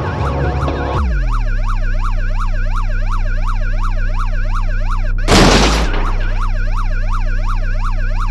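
A police siren wails quickly up and down.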